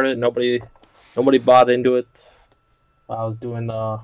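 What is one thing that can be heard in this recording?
Cardboard boxes are set down on a table with a soft thump.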